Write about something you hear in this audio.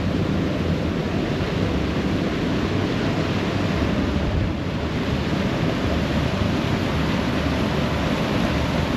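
Water rushes and roars over a weir.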